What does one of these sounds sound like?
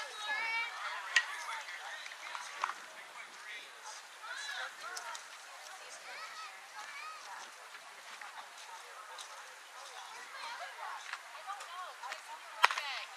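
Young girls call out and cheer across an open field.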